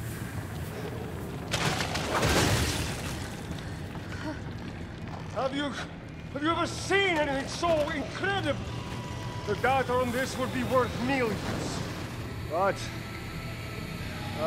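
A middle-aged man speaks tensely.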